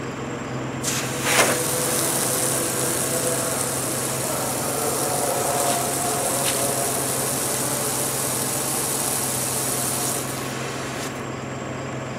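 Washer fluid sprays with a steady hiss onto a car windshield.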